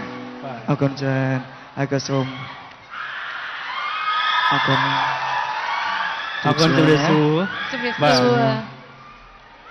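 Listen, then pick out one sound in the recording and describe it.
A man speaks with animation over a loudspeaker.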